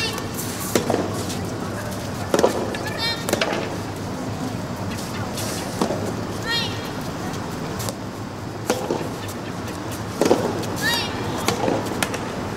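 A tennis ball is struck sharply by rackets back and forth.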